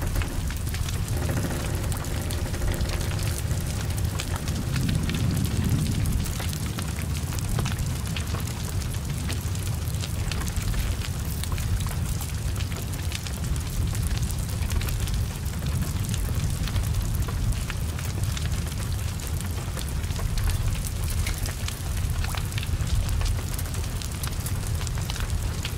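Flames roar and crackle as a car burns.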